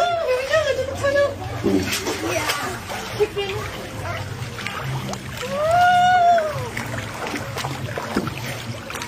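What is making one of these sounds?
Water splashes and laps gently.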